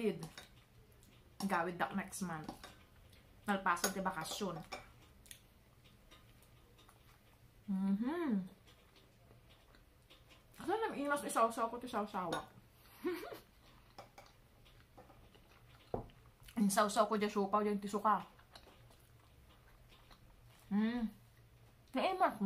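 A woman chews food with soft smacking sounds.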